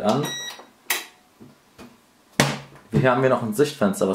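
A plastic lid clicks shut.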